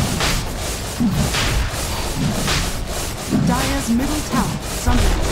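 Magic blasts whoosh and crackle in a busy fight.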